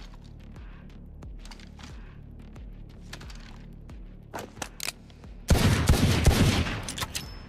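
A gun clicks and rattles as it is handled and switched.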